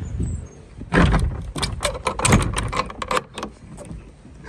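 A metal bolt latch slides and clacks.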